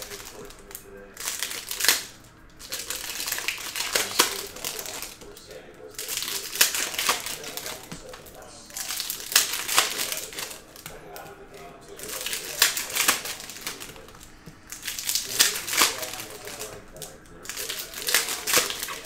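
Trading cards rustle and slap as they are dealt onto a stack.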